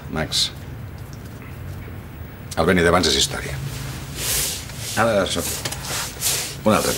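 A middle-aged man speaks quietly and earnestly nearby.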